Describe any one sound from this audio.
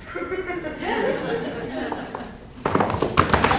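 A young woman speaks with emotion, heard across a theatre hall.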